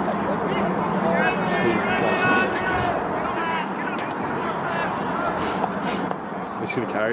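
Several adult spectators talk and call out nearby, outdoors.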